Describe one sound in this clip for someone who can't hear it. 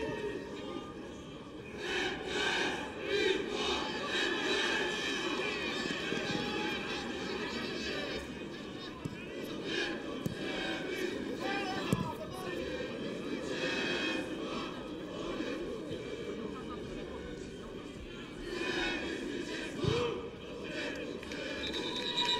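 A stadium crowd murmurs and chants in the open air.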